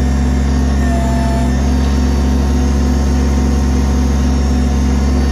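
The diesel engine of a compact tractor backhoe runs with a steady low drone.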